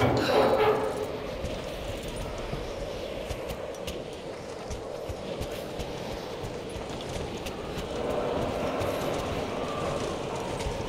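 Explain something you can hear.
Wind blows steadily.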